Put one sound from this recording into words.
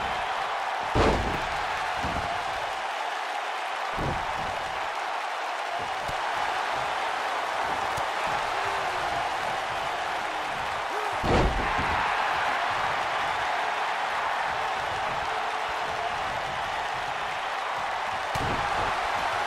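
Heavy thuds of bodies slamming onto the mat ring out now and then.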